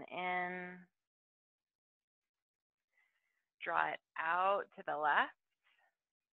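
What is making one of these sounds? A woman speaks calmly and softly, close by.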